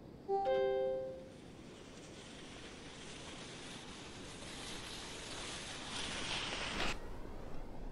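Skis hiss down an icy ramp.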